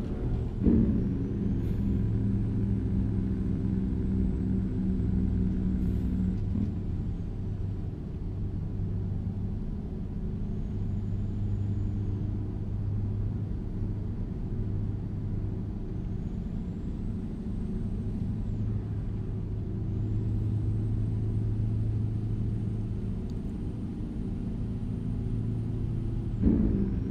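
A truck's diesel engine drones steadily, its pitch shifting as gears change.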